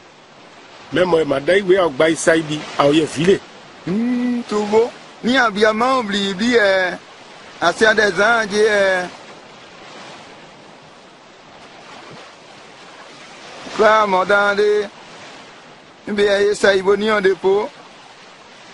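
A man speaks loudly and with animation.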